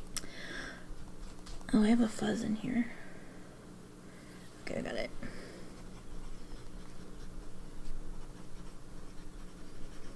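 A pen nib scratches softly on paper.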